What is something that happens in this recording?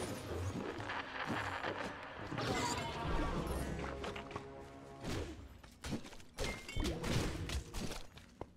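Magic spells burst and crackle loudly.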